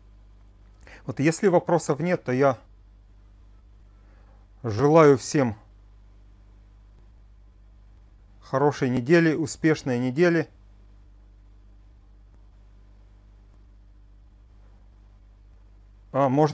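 A middle-aged man speaks calmly over an online call, in short bursts.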